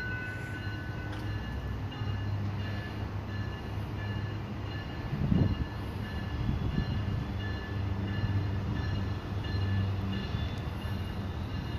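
A train slowly approaches with a low engine rumble.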